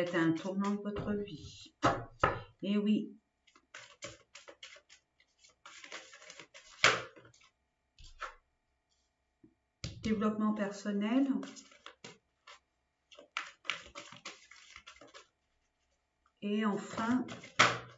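Playing cards riffle and slap as they are shuffled.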